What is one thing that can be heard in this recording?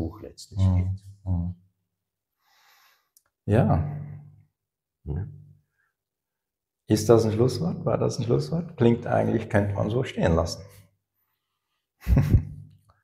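An older man answers calmly, close by.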